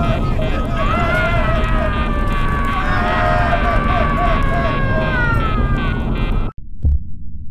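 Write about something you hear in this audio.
A man shouts excitedly into a microphone.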